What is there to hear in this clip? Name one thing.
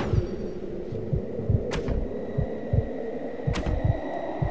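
Footsteps thud quickly on stone as a man runs.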